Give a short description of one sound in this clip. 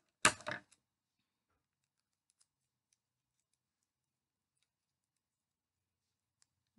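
A cord rustles and ticks softly.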